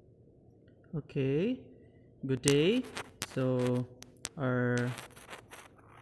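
A young man speaks calmly into a close microphone.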